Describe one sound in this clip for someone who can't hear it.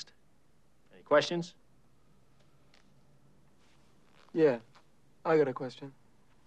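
A man speaks sternly, close by.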